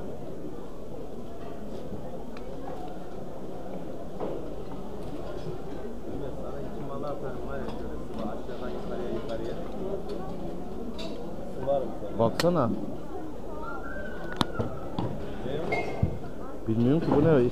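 A crowd chatters all around in a large echoing hall.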